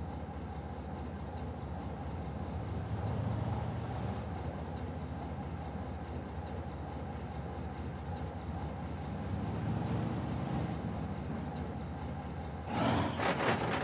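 A truck engine idles with a low rumble.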